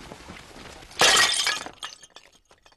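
A clay jar shatters loudly into pieces.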